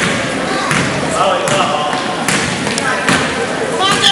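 A basketball bounces on a gym floor in an echoing gym.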